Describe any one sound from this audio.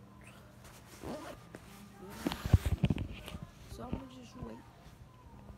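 A puffy jacket rustles loudly close by.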